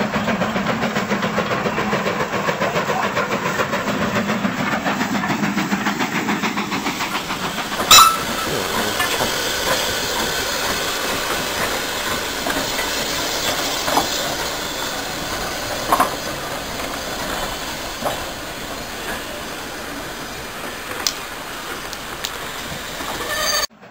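A model train clatters along the rails.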